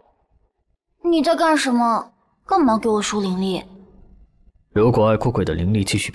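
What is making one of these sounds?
A young man speaks in a low, tense voice, close up.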